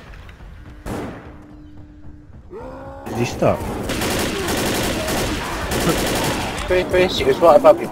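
Pistol shots pop one after another.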